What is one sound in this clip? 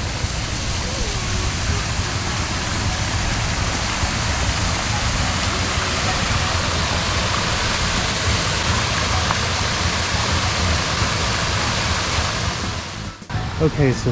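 A waterfall splashes and rushes steadily close by.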